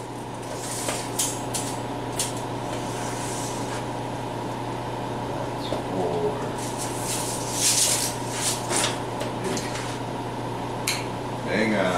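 Metal rods clank and rattle against each other.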